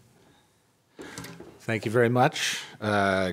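A middle-aged man speaks into a microphone in a large hall.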